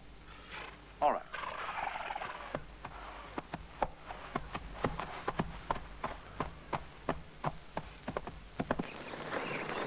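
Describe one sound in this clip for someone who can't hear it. Hooves thud on leaf-covered ground as a horse gallops away.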